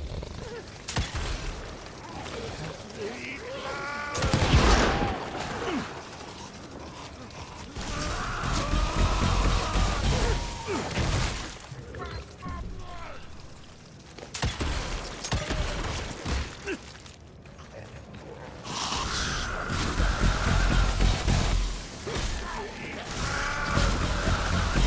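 Gunshots bang.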